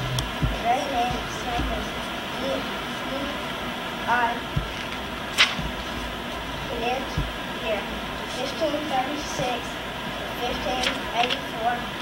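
A young boy speaks quietly nearby.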